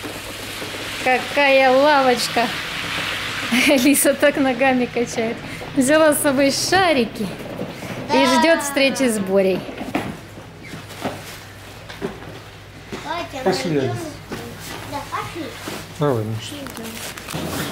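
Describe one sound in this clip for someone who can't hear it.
A young girl talks and sings in a high voice close by.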